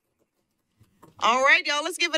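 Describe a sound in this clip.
A young woman starts speaking into a microphone.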